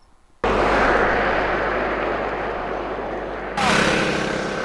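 A car rushes past close by on asphalt.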